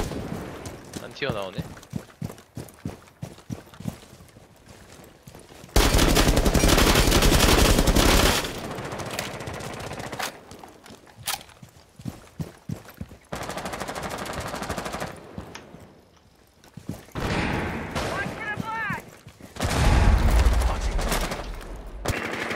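Footsteps crunch on gravel and stone.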